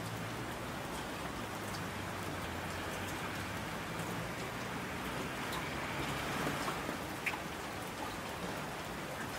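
Mountain streams rush and roar.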